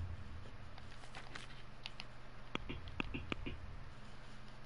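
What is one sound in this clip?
Soft interface clicks tick as menu entries change.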